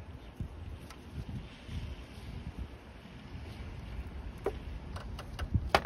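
A cordless ratchet whirs as it turns a bolt.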